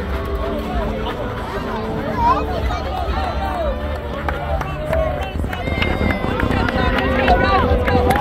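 A crowd of children and adults chatters and shouts outdoors in a large open space.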